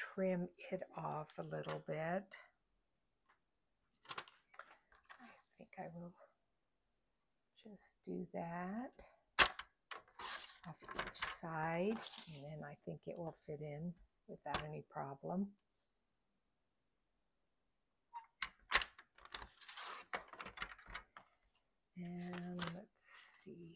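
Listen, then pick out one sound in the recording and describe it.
Paper rustles softly as hands handle it.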